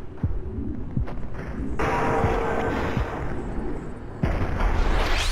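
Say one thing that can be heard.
Heavy punches thud against armour.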